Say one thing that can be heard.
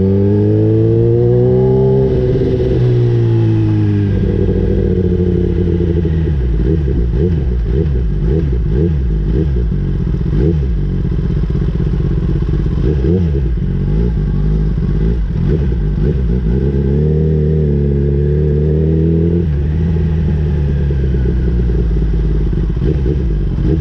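A motorcycle engine revs up and down and slows as the bike rolls along.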